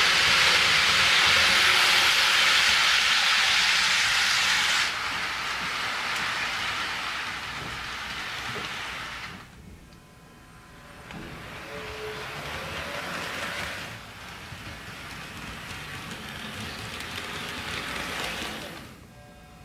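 A model locomotive's motor hums as it passes.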